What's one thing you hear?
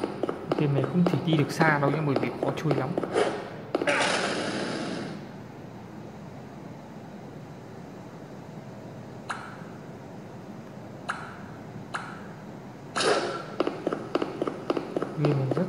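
Fast video game music and sound effects play through a small tablet speaker.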